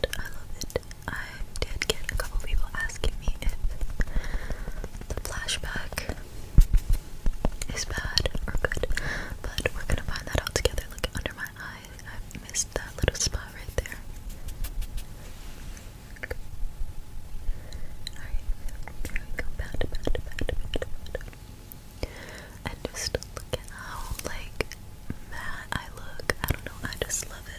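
A makeup sponge taps and dabs against skin close to a microphone.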